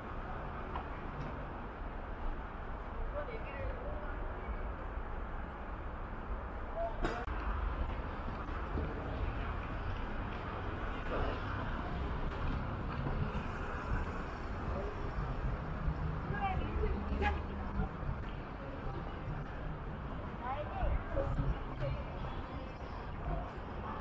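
City traffic rumbles steadily nearby outdoors.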